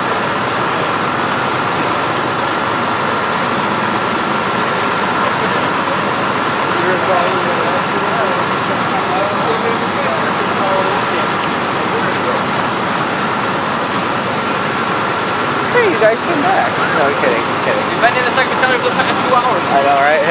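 A large fire roars and crackles steadily outdoors.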